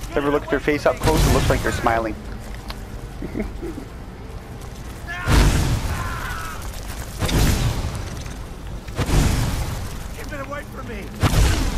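Magic flames roar in loud, repeated bursts.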